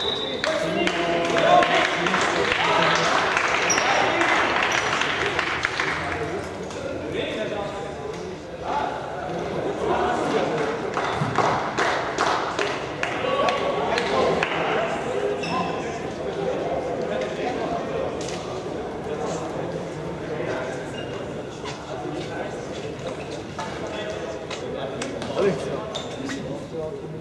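Players shout and call to each other across a large echoing hall.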